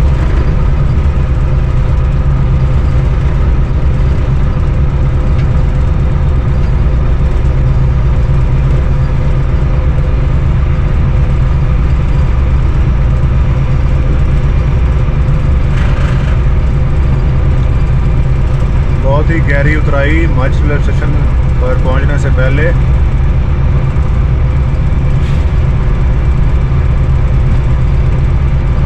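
A locomotive engine rumbles steadily.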